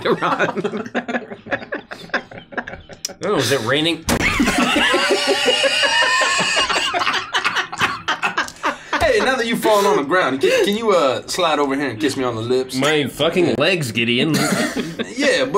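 A young woman talks and laughs through a microphone.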